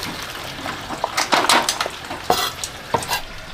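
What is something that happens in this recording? Crisp vegetable stalks rustle and thud as they are dropped into a pile.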